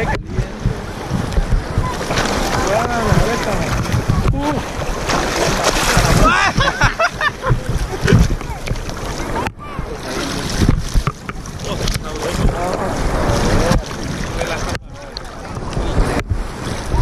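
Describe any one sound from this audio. Sea water splashes and sloshes close by.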